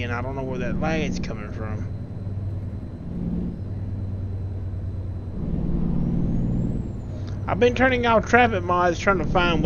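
A truck engine hums low and steady.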